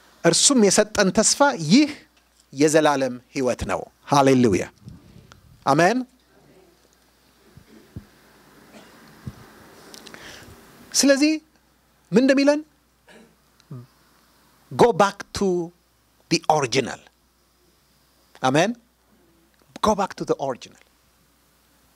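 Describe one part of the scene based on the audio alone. A middle-aged man preaches with emphasis into a microphone, in bursts with pauses.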